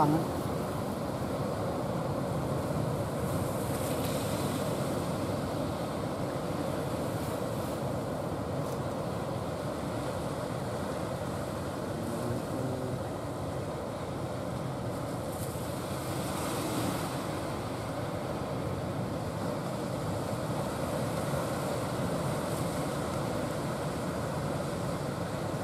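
A boat engine chugs out on the water.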